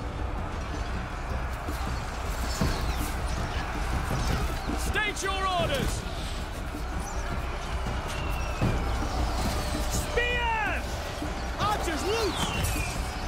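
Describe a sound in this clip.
A large battle roars steadily with clashing weapons and shouting soldiers.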